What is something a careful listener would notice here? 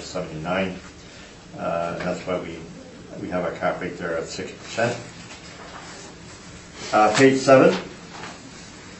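A woman speaks calmly, heard from across a room.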